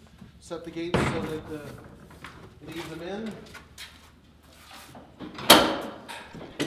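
A metal latch clanks on a stall door.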